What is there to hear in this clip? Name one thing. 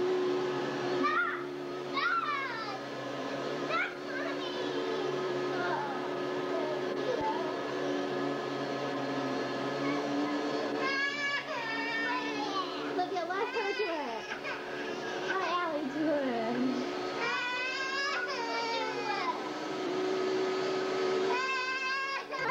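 A young child chatters and squeals in a high voice.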